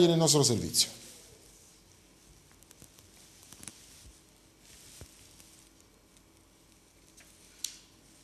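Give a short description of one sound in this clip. Paper rustles softly as a man shuffles sheets.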